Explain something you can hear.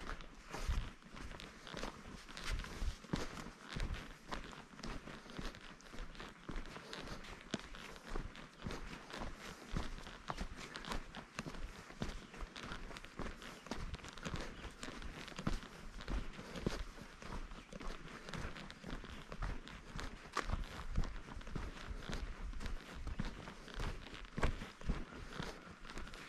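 Footsteps crunch steadily on a dirt trail.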